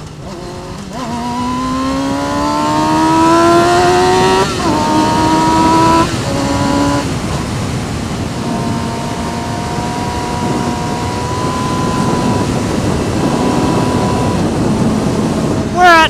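Wind rushes loudly past a moving motorcycle.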